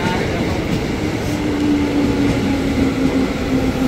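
Train wheels squeal with a steady high whine.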